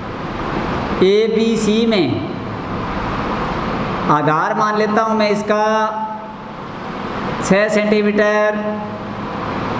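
A young man speaks calmly and clearly, close by, as if explaining.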